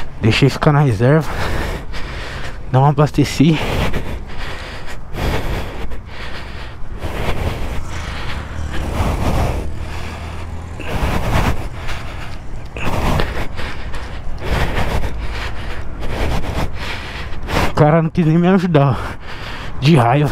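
A motorcycle engine revs up and down in quick bursts.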